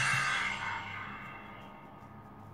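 A short electronic chime rings from a small phone speaker and fades away.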